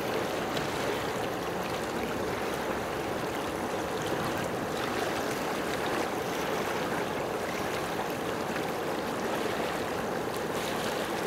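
Water splashes and laps gently nearby.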